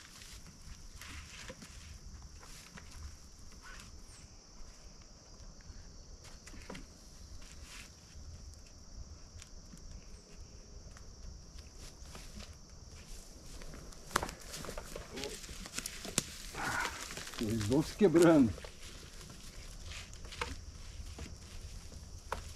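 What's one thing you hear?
Pieces of wood knock and clatter as they are laid on a wooden rack.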